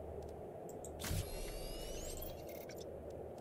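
A bright electronic chime rings briefly.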